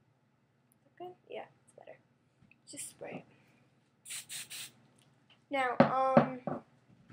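A young woman speaks casually and close by, heard through a microphone.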